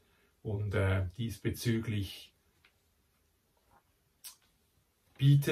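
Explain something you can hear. A middle-aged man reads aloud calmly, close by.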